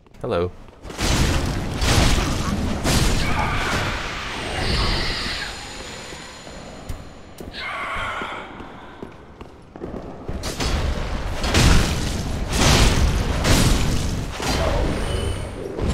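Weapons strike and clash loudly in a fight.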